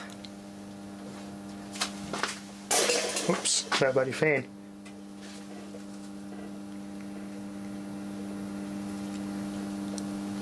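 Electric meters hum steadily.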